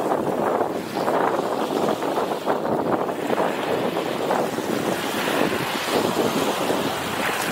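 Small waves wash and splash onto a beach.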